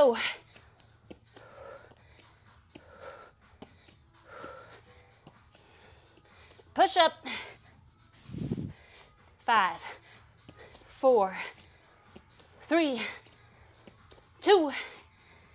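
Hands tap softly on a mat.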